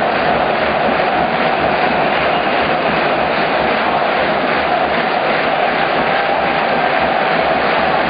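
A large crowd cheers and claps loudly in a big echoing hall.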